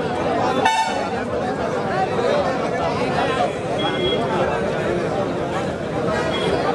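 A large outdoor crowd of men chatters and shouts all at once.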